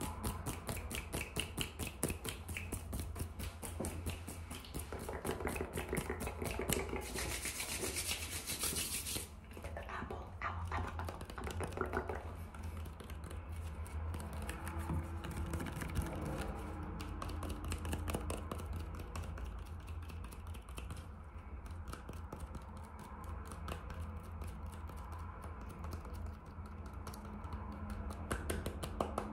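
A young woman whispers softly close to a microphone.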